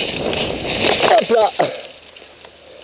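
A bike crashes down into dry leaves with a sudden clatter.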